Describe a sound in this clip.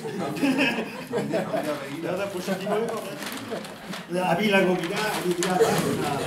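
A large paper sheet rustles as a young man turns it over.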